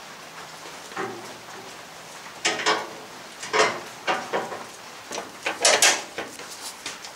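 Wooden boards knock and clatter as they are handled.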